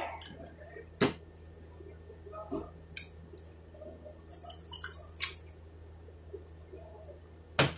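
Metal gear parts clink and clatter as they are handled.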